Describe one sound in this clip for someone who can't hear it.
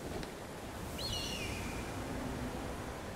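A hawk screeches.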